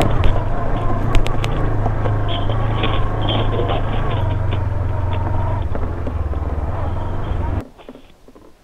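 A motorcycle engine hums and revs steadily close by.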